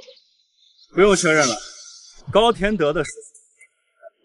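A young man speaks calmly and clearly up close.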